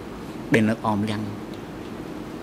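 A man briefly says a few words into a microphone.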